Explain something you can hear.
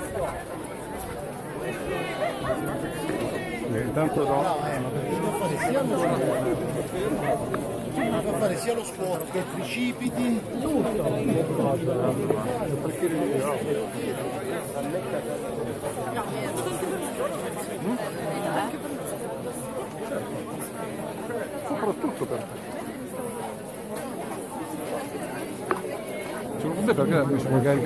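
A large crowd of men and women chatters close by, outdoors.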